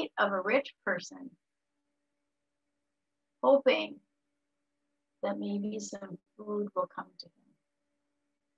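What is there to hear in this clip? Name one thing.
A woman speaks calmly through an online call, in short phrases with pauses.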